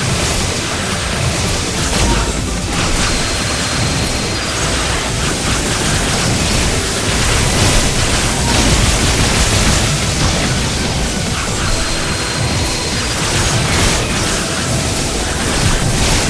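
Game lasers and shots blast and crackle without pause.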